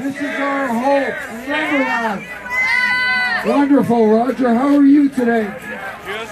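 A crowd of men and women chants loudly outdoors.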